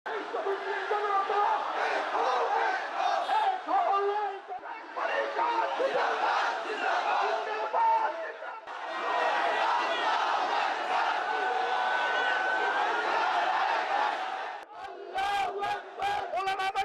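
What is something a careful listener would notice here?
A large crowd of men chants loudly outdoors.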